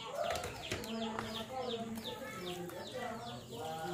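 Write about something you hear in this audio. A ladle stirs chunks of food in a basin of liquid.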